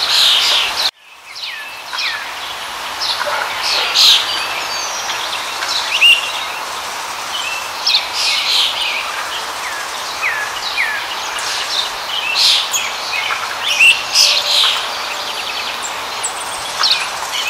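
A small waterfall splashes into a pool.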